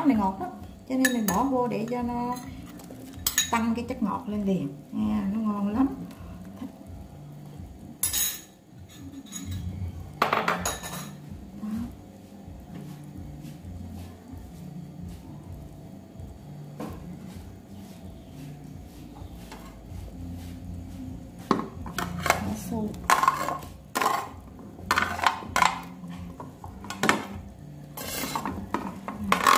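Soup bubbles and simmers steadily in a pot.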